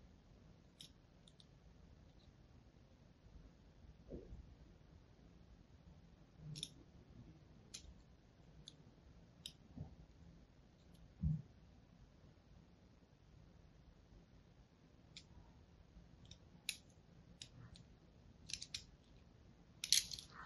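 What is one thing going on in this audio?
A knife blade scrapes and cuts into a bar of soap with soft, crisp scratches.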